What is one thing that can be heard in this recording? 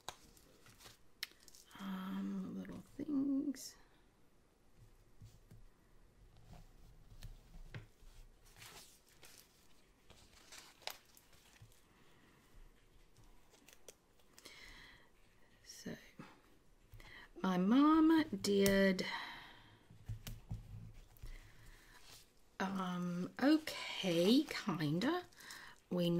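A paper sticker sheet rustles as it is handled.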